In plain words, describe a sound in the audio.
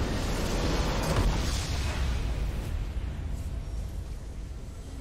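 A triumphant game fanfare swells and slowly fades.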